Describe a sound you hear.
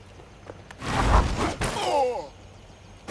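A heavy blow lands with a sharp thud.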